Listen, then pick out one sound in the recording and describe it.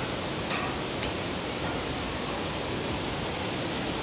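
Water rushes and splashes steadily down a waterfall outdoors.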